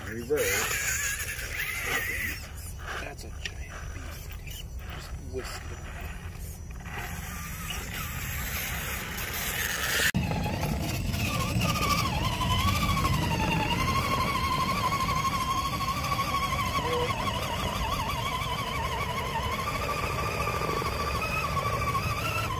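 A small electric motor whines as a toy truck crawls slowly over rock.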